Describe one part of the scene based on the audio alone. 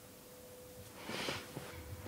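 Clothing rustles as a woman moves her arm.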